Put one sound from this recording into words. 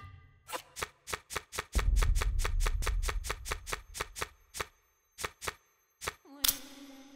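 Short electronic clicks tick rapidly, one after another, then slow down.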